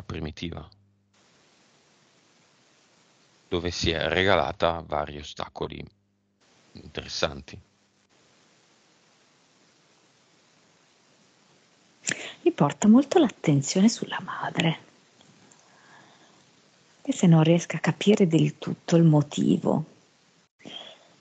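A man speaks calmly through a headset microphone on an online call, in short bursts with pauses.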